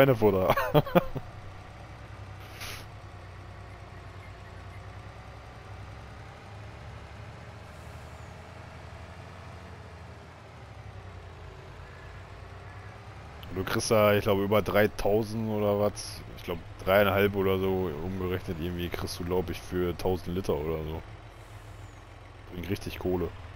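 A truck engine hums steadily as the truck drives along.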